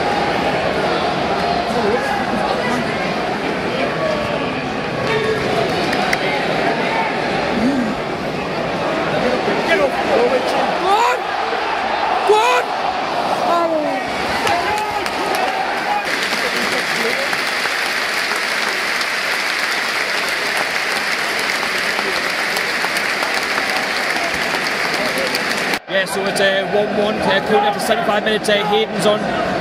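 A large stadium crowd roars and chants loudly outdoors.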